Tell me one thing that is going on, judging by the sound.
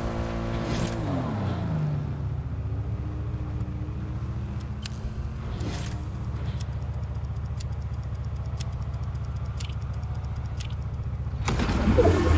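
A car engine winds down and idles low.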